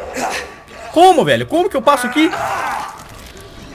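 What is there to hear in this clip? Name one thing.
A zombie growls and snarls loudly.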